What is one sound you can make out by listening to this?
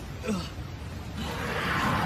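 A man shouts.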